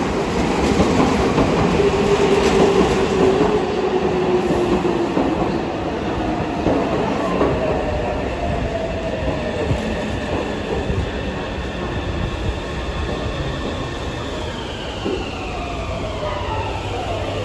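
Train brakes squeal with a high, gliding whine as the train slows.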